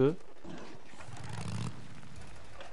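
A motorcycle engine idles and revs low.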